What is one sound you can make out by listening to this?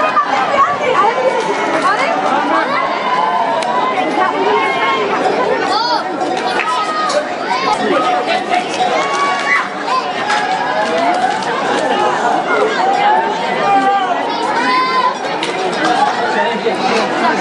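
A large crowd shouts, cheers and whistles outdoors.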